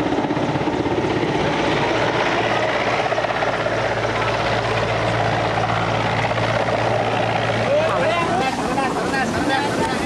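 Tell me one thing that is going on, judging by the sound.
A helicopter's rotor drones steadily overhead.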